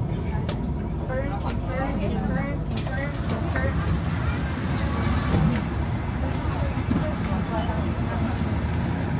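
A crowd of passengers chatters nearby.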